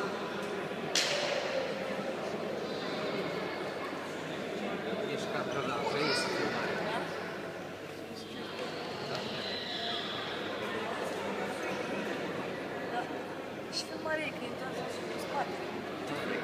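Rackets hit a shuttlecock with sharp pops.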